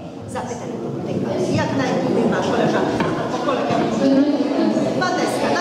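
A crowd of adults and children chatters in a crowded echoing room.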